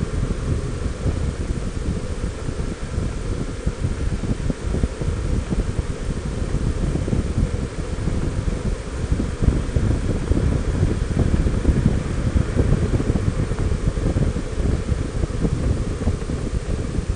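Tyres roll on rough pavement.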